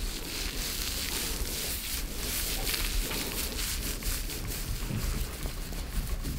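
Fingers rub and scratch through damp hair close to the microphone.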